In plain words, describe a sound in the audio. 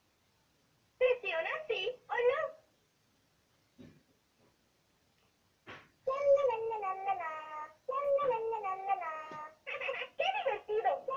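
A talking toy doll speaks in a bright young girl's voice through a small tinny speaker.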